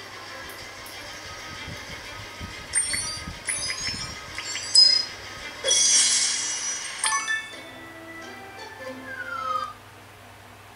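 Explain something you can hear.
A mobile game plays bright chiming sounds as coins are collected.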